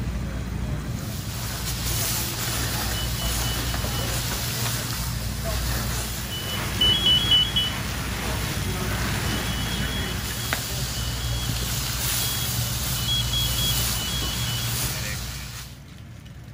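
A fire hose sprays water with a steady hiss.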